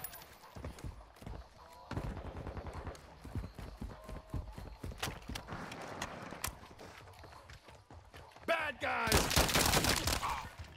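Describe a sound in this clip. Footsteps patter quickly on hard pavement.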